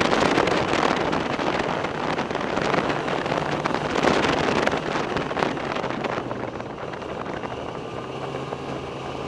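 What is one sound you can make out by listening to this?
A snowmobile engine drones steadily close by.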